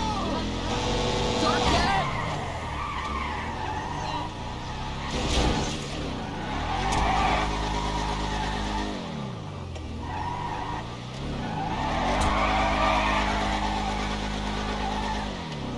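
Tyres screech and squeal on pavement.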